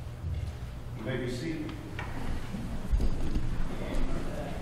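People talk in a large echoing room.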